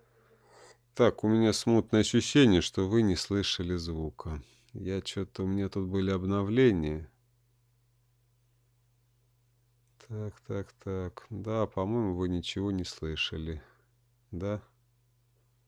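A man talks calmly and close to a microphone, in pauses, over an online call.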